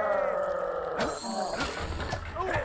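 A sword whooshes through the air.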